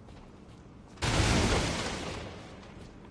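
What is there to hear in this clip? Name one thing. A magic blast bursts with a loud rushing whoosh.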